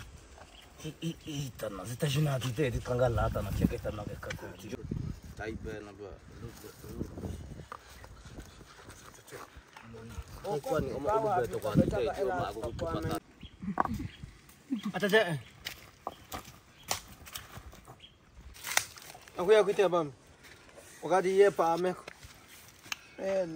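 Young men talk casually nearby, outdoors.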